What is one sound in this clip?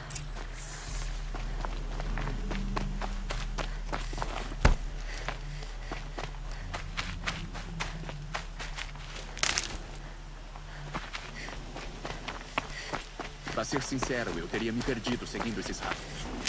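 Quick footsteps run through dry grass and over rocky ground.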